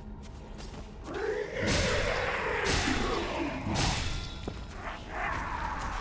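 A spear slashes and strikes a creature with heavy impacts.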